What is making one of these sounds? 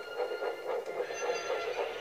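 A steam engine chuffs along the rails.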